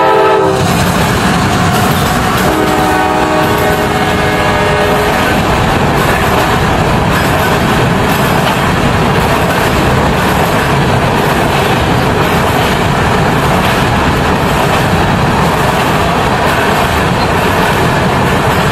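A freight train rumbles past close by.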